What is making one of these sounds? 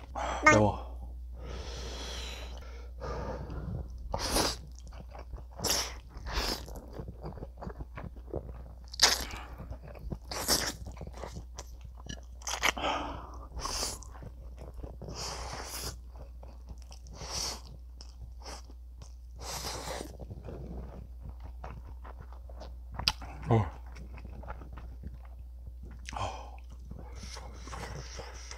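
A man chews and smacks his lips noisily.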